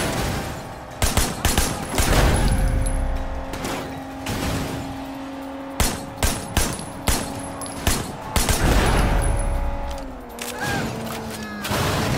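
A submachine gun fires in short bursts.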